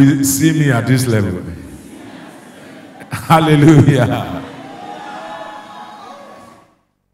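A man speaks with animation through a microphone in a reverberant hall.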